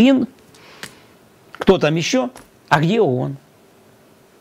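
A middle-aged man speaks with animation into a close microphone, in short bursts.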